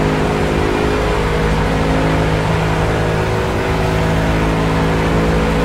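A racing car's engine roars loudly and steadily.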